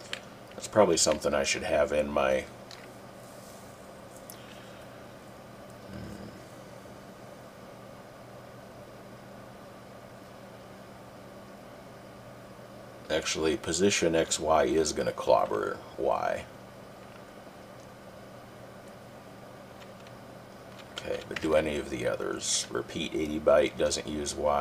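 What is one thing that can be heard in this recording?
A middle-aged man speaks calmly into a close microphone, pausing now and then.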